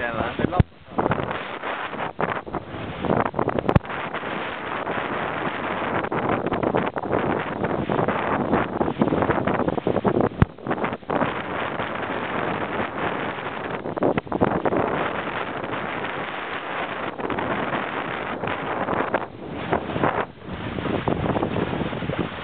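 Waves splash and rush against the hull of a sailing boat.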